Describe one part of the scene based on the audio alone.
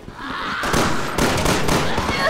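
Pistol shots ring out loudly in a large echoing hall.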